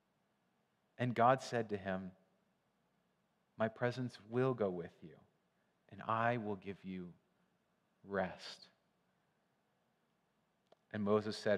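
A young man reads aloud calmly through a microphone, with pauses between phrases.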